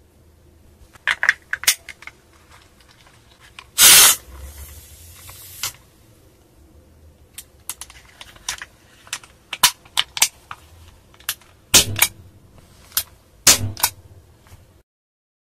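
Metal parts of a pistol click and snap together.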